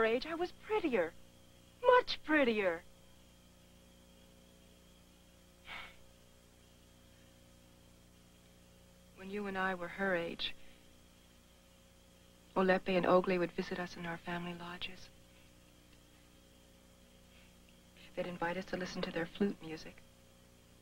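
A woman speaks calmly and warmly, close by.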